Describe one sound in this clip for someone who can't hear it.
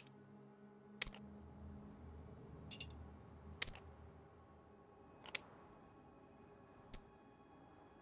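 Metal gun parts click and clack as they are handled.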